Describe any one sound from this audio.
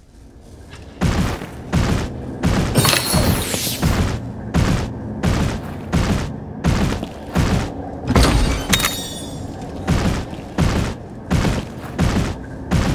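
A large beast's heavy footsteps pound rhythmically on stone.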